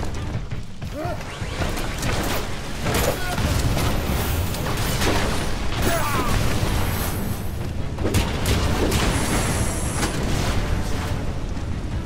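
Explosions boom and crackle one after another.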